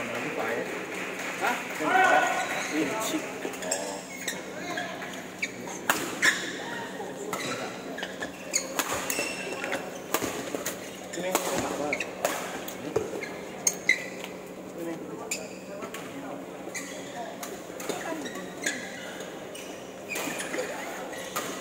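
Rackets hit a shuttlecock with sharp pops.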